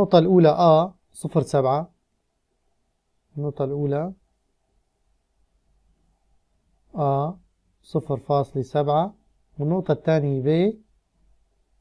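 A man speaks calmly and steadily into a close microphone, explaining in short bursts with pauses.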